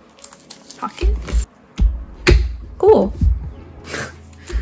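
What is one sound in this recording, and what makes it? Metal binder rings snap open and shut with sharp clicks.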